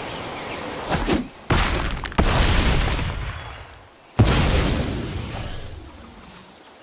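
A heavy crashing impact booms and rumbles away.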